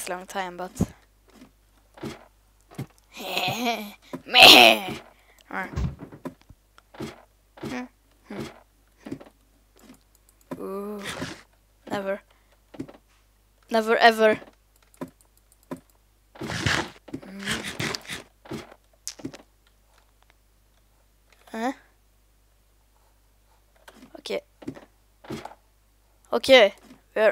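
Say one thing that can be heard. Footsteps tap steadily on a wooden ladder.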